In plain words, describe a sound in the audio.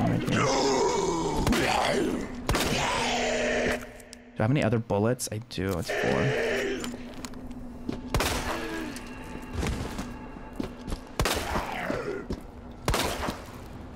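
Gunshots bang sharply.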